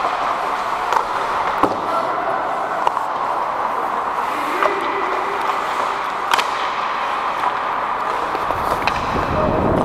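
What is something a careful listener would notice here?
Hockey sticks clack against a puck on the ice in a large echoing hall.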